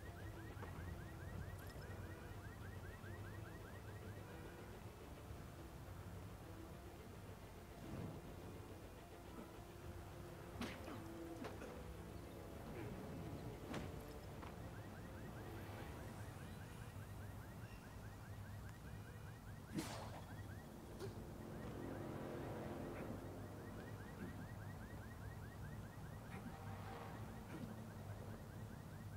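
Rain patters steadily on a street.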